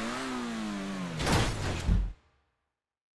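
A car crashes and tumbles down a rocky slope.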